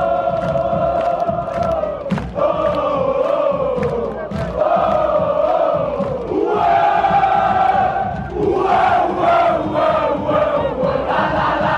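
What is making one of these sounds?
Fans clap their hands to the beat.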